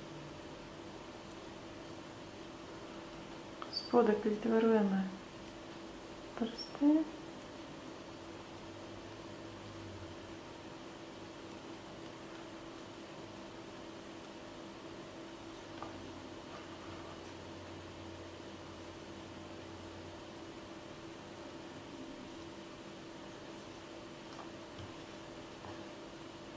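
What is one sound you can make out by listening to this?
Fingers softly press and rub a piece of soft sugar paste.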